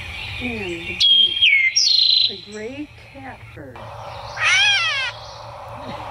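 A recorded bird call plays through a small loudspeaker.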